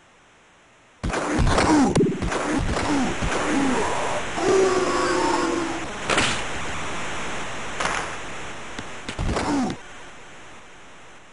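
A crowd roars and cheers in a large arena.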